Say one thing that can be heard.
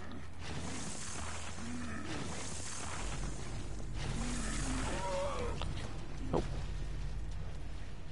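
Footsteps splash through a wet floor.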